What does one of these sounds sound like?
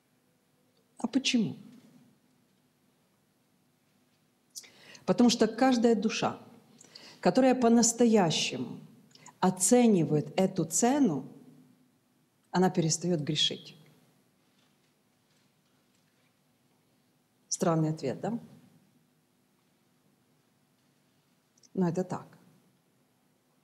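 A middle-aged woman speaks calmly into a close microphone, pausing between phrases.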